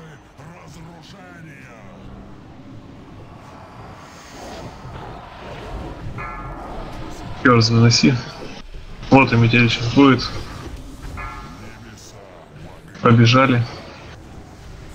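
Fantasy battle sound effects crackle and whoosh as spells are cast.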